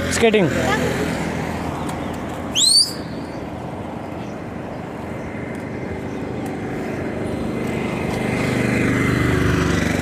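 Inline skates roll on asphalt.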